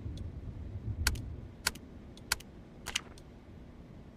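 Keypad buttons beep sharply as a code is entered.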